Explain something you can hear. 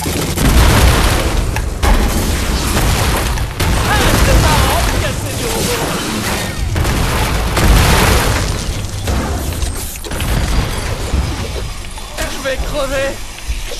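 Gunfire and energy blasts crackle and boom in quick bursts.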